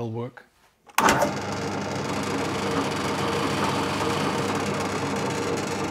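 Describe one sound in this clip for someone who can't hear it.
A drill press runs with a steady whirr.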